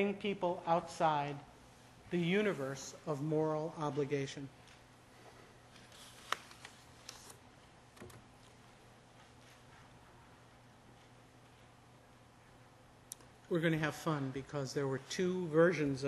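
A man lectures calmly through a microphone, pausing between phrases.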